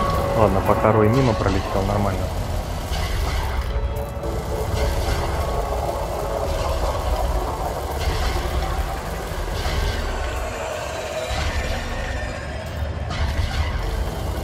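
A spaceship engine rumbles deeply and steadily.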